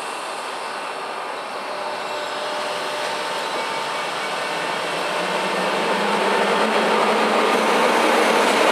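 An electric train approaches and rumbles past, growing louder.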